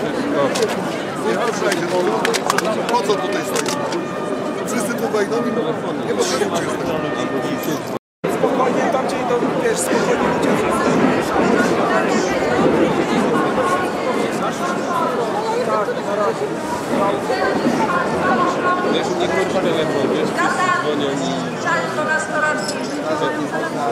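A large crowd of men and women chants and shouts loudly outdoors.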